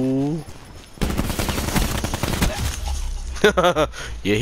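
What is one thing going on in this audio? Rapid gunfire rattles in a burst.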